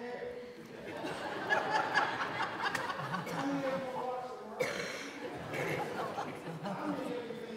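A crowd of people sings together.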